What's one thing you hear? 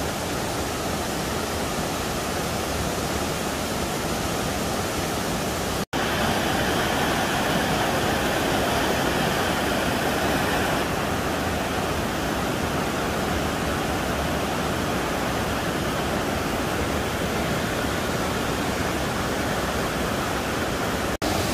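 A rocky stream rushes and splashes steadily over stones outdoors.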